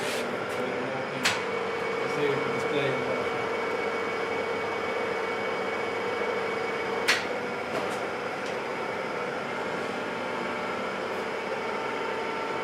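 A milling machine motor hums steadily.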